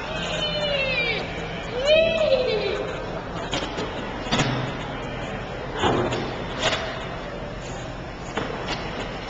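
A trampoline thumps as a child bounces on it.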